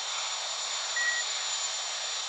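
A short electronic chime sounds once.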